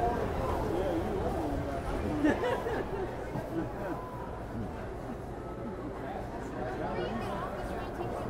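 A carousel turns with a low mechanical rumble.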